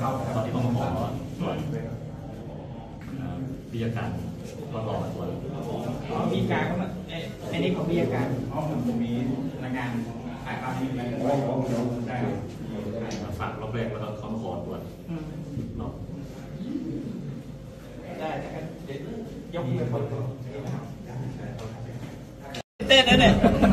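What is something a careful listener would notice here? Men talk nearby in calm voices.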